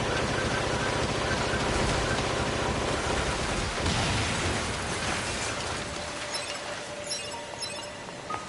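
Swords clash and slash in a fast fight.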